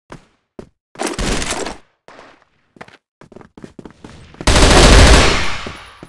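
A rifle fires rapid bursts of shots up close.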